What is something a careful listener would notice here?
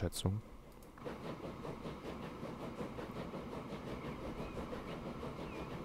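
A train rolls along a track with steady rhythmic clacking.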